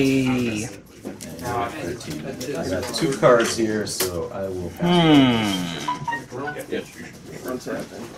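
Playing cards slide and snap as they are shuffled by hand.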